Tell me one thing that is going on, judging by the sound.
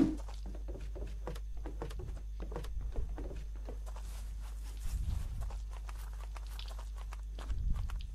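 Footsteps tread lightly on the ground.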